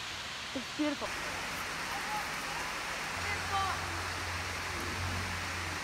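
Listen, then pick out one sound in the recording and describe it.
A stream flows over rocks.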